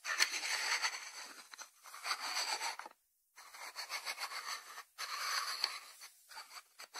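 Fingers rub and tap a ceramic lidded dish on a wooden board.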